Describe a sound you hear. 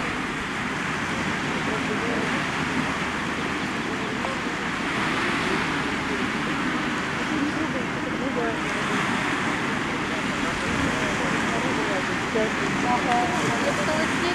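Waves crash and surge steadily onto a rocky shore.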